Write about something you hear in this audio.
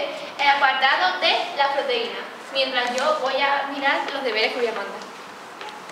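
A young woman speaks clearly to a room, close by.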